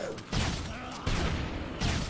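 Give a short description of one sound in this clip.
A gun fires in rapid shots.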